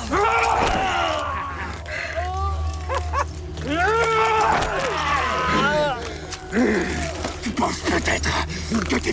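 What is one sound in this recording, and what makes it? A man shouts during a struggle.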